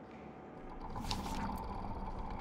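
A soft whoosh sounds.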